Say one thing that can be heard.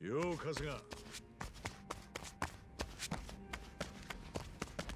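Footsteps thud quickly up a flight of stairs.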